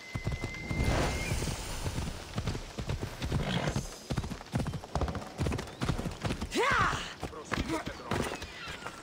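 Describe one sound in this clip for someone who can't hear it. A horse gallops with quick, rhythmic hoofbeats.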